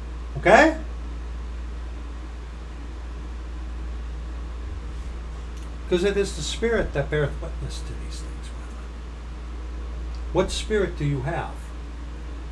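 A middle-aged man speaks calmly and close to a microphone, with pauses.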